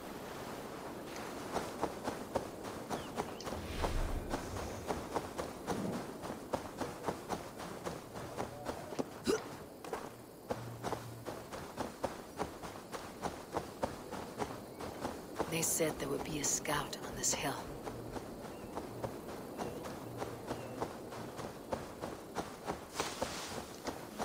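Quick footsteps rustle through tall grass.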